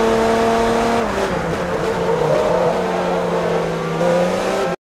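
A racing car engine slows sharply for a corner and pops as it brakes.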